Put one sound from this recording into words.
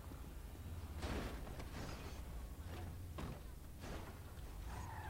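A car door opens and shuts with a thud.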